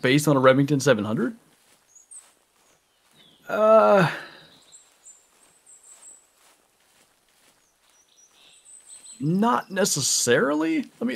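Footsteps swish through grass and undergrowth.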